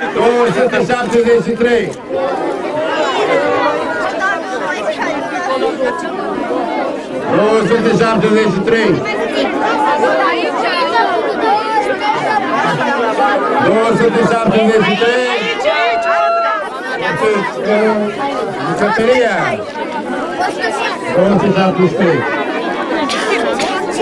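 A crowd of children and adults chatters in the background.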